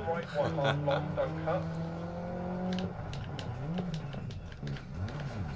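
A rally car engine revs and roars, rising and falling in pitch.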